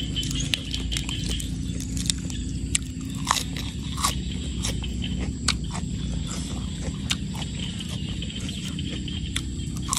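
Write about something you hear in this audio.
Pieces of crunchy pork crackling snap apart between fingers.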